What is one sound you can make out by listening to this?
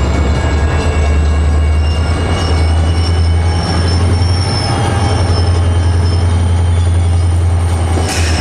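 A diesel locomotive rumbles steadily as it approaches slowly.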